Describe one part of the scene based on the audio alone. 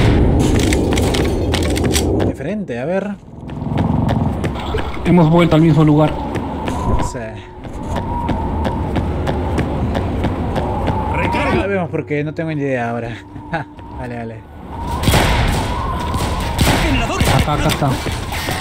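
A pistol fires in quick shots.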